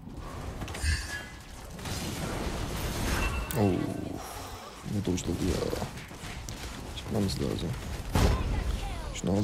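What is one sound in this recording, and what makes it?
Magic blasts and sword hits crash in quick bursts.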